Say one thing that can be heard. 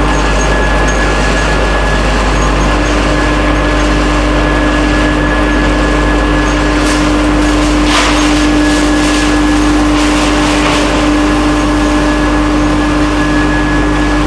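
A machine hums loudly and steadily.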